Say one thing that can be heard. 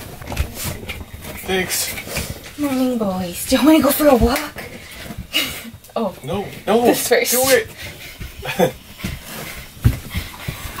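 A dog scrambles and thumps on cushions.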